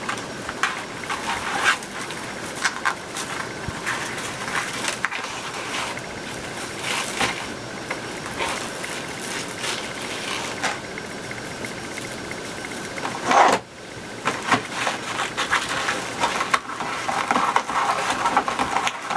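Plastic mesh ribbon crinkles and rustles close by as it is handled.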